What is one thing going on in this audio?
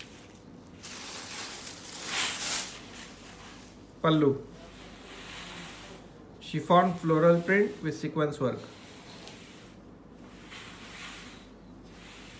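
Fabric rustles softly as hands handle cloth.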